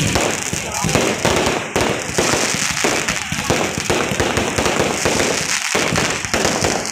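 Firework shells whistle and hiss as they shoot up.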